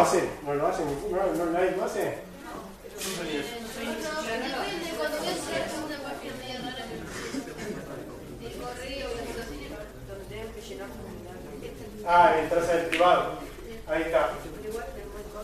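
A man speaks at length in a large echoing hall.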